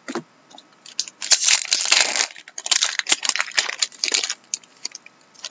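Paper and card packaging rustles and tears.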